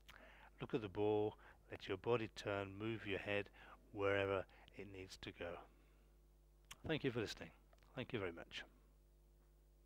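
An elderly man speaks calmly into a clip-on microphone.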